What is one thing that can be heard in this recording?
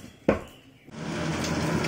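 Eggs sizzle in a hot frying pan.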